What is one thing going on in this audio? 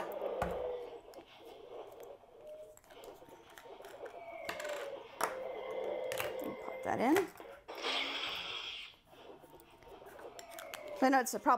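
Plastic parts click and snap together.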